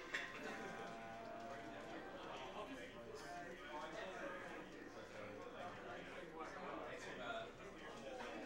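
A crowd chatters in the background of a busy hall.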